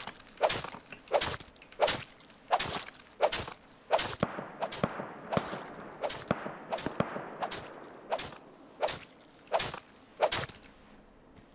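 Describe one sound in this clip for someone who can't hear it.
Sharp chopping blows strike an animal carcass again and again.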